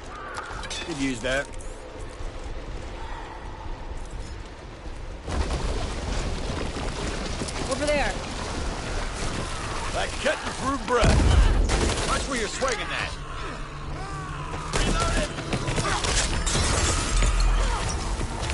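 Zombies snarl and growl up close.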